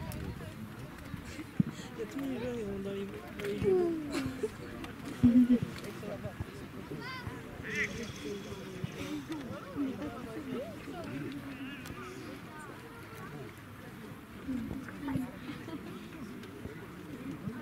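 Men talk and call out at a distance outdoors.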